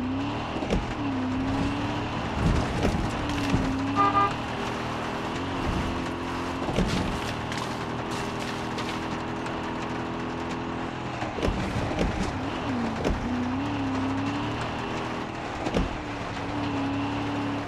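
A car engine hums steadily, rising and falling in pitch as the car drives.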